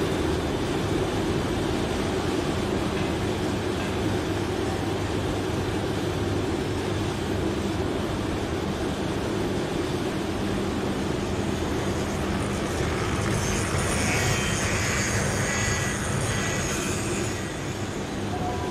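A furnace roars steadily.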